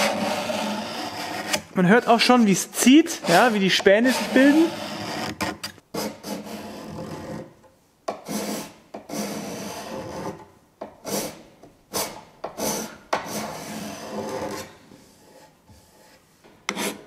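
A steel scraper rasps across wood in short strokes.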